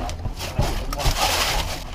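Water hisses from a hose nozzle.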